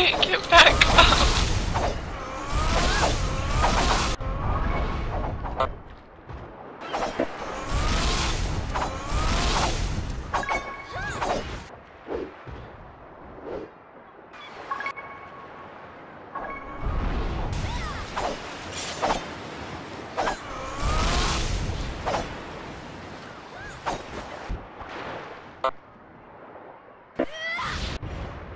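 Swords clash and whoosh in a game fight.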